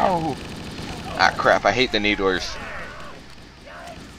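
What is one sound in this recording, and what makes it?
A rifle is reloaded with a metallic clatter.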